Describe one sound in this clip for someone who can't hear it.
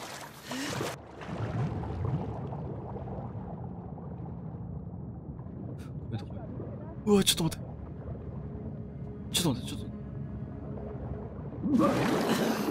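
Water rumbles, low and muffled, underwater.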